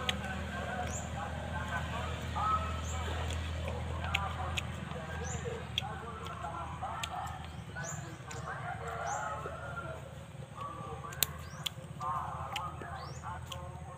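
A man chews crunchy mango close up.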